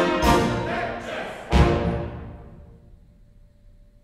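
A chamber orchestra plays loud final chords that ring out in a large echoing hall.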